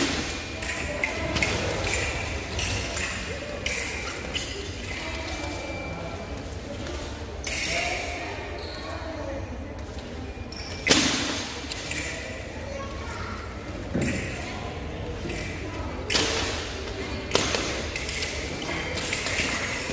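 Fencing blades clash and scrape in quick bursts in an echoing hall.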